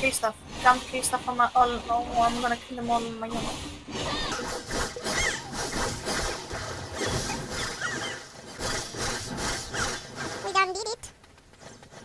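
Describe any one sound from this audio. Magic strikes whoosh and crackle in a fight.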